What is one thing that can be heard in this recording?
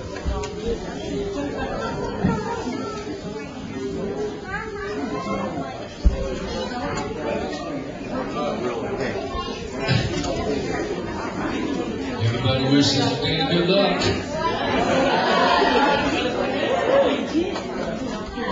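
A middle-aged man speaks with animation through a microphone and loudspeakers in an echoing room.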